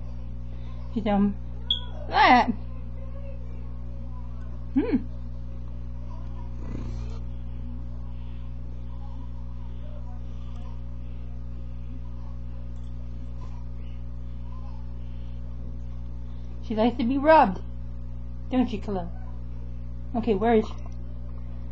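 A cat meows loudly, close by, several times.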